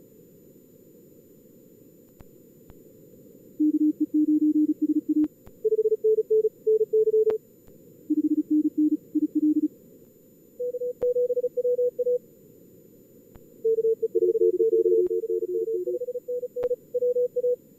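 Radio static hisses softly and steadily.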